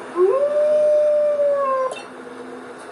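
A wolf howls in a long, rising then steady cry that cuts off abruptly.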